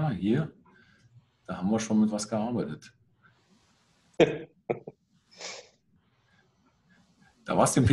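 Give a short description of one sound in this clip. An elderly man speaks calmly over an online call, in short bursts.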